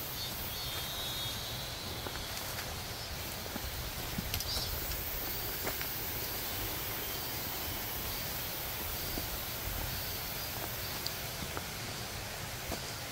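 Leaves and twigs rustle as a man brushes past plants.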